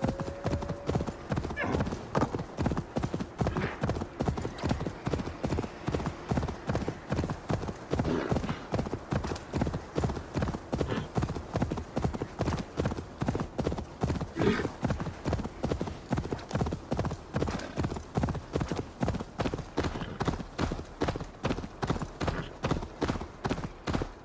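A horse gallops steadily, hooves thudding in a fast rhythm.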